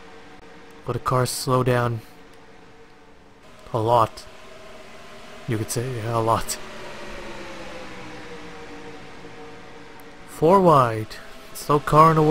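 Racing car engines drone steadily.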